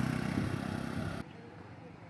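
A motor scooter drives past on a quiet street.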